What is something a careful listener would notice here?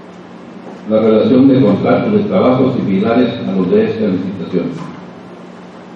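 A man speaks clearly through a microphone.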